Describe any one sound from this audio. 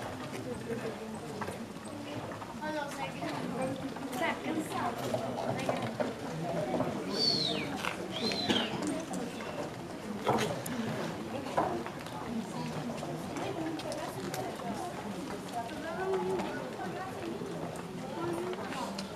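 A crowd of men and women chatter outdoors nearby.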